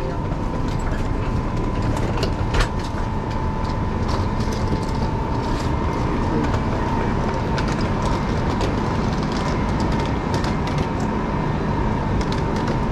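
A busy station hums with echoing background noise in a large hall.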